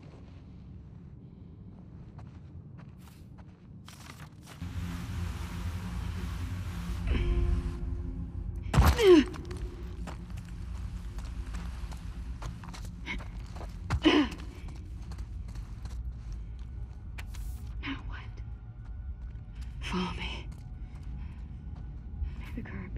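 Paper rustles as a note is handled.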